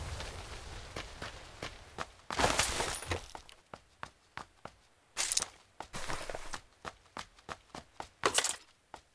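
Footsteps thud on hollow wooden floorboards.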